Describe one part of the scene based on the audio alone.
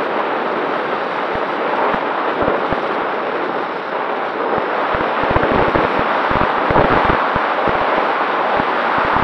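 Wind rushes and buffets loudly past.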